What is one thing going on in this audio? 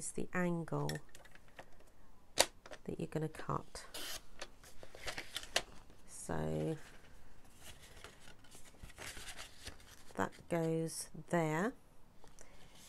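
Stiff paper rustles and scrapes as it is handled.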